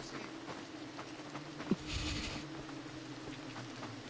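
Fire crackles softly.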